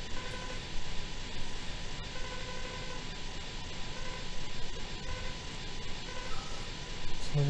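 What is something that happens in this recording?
Short electronic beeps chirp in quick bursts as text prints out.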